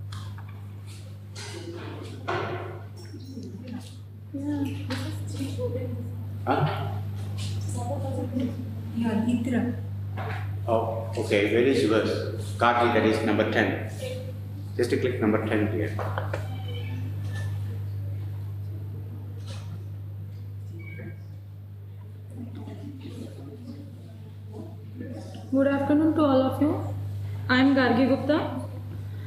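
A man speaks through a microphone in a calm, explaining way.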